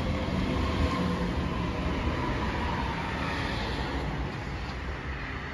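A train rumbles along the tracks and fades away.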